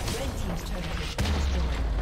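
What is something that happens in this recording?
A tower crumbles with a heavy crash.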